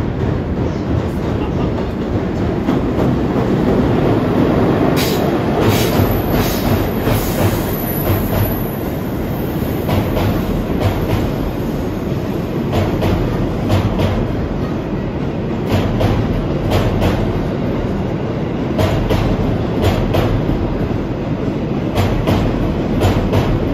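A train rumbles past close by.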